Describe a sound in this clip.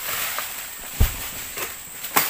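A heavy oil palm fruit bunch thuds onto the ground.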